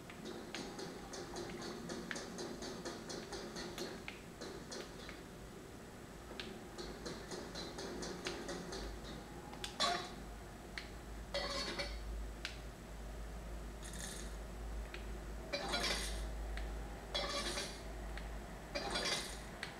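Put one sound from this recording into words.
Upbeat video game music and sound effects play from a television.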